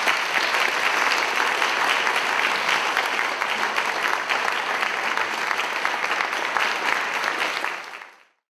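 An audience claps and applauds steadily, then the applause fades out.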